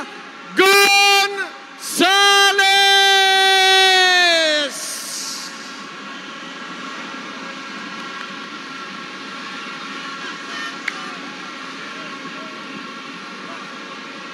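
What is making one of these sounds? A large crowd murmurs and shouts in a big echoing space.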